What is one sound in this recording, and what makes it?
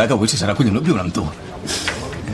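A young man speaks warmly up close.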